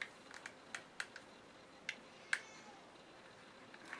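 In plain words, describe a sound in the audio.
A glue gun clicks.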